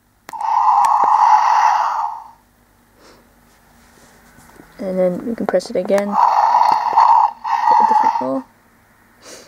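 A toy dragon lets out a loud electronic roar.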